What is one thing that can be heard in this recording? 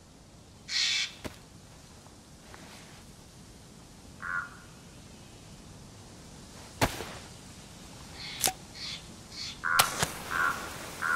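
Fir branches rustle and snap as they are broken off.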